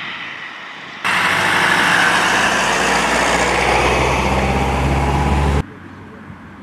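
A truck engine rumbles loudly close by.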